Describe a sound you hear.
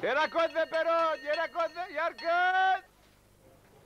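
A man shouts loudly in a long sing-song call, close by.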